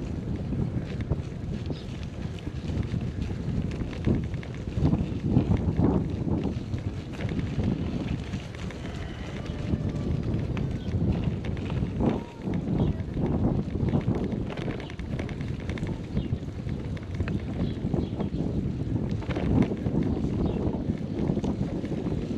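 Wind rumbles and buffets loudly, outdoors.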